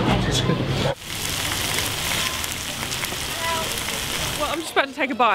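Sausages sizzle and hiss in a hot pan.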